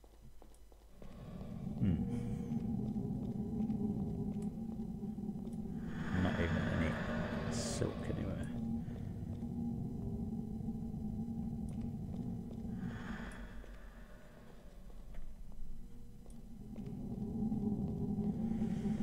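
Low game music plays steadily.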